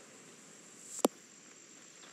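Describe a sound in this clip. A golf ball thuds into sand.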